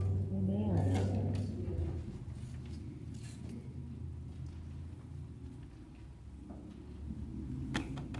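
An organ plays softly.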